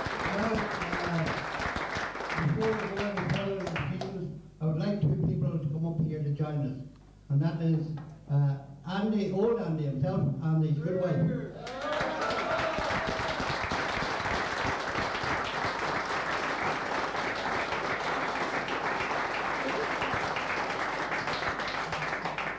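A crowd murmurs and chatters in a busy room.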